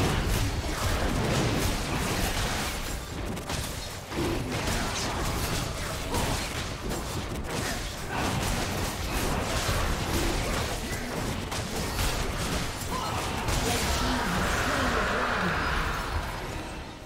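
Magic blasts and weapon strikes crash in a fast battle.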